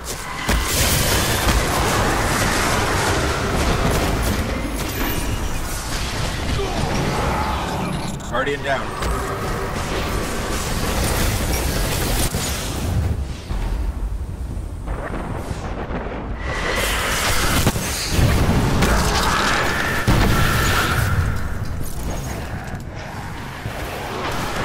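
Gunfire and explosions crackle and boom in a video game.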